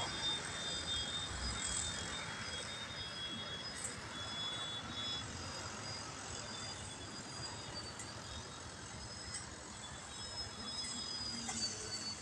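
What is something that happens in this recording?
A model airplane's small motor whines high overhead, its pitch shifting as it flies.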